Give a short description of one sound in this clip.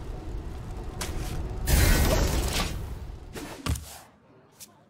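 A magical whoosh bursts out as a game piece lands on the board.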